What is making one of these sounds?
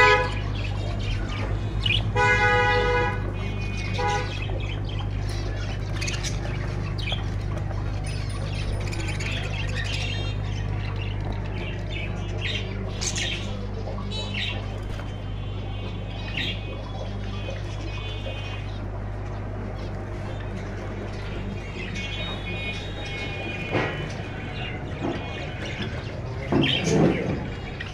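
Many small birds chirp and chatter busily close by.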